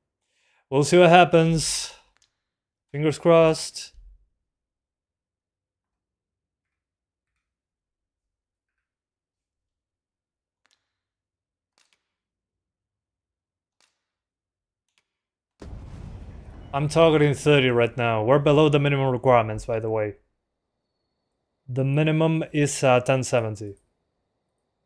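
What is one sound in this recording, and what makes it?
A young man talks calmly and close into a microphone, with pauses.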